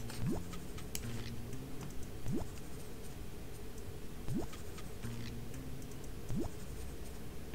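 A short rising whistle sounds each time a new order pops up.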